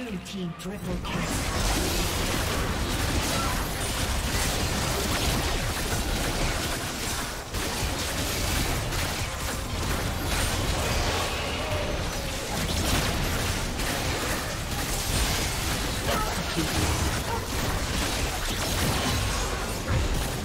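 Game spell blasts and impacts crackle and boom in a dense, busy stream.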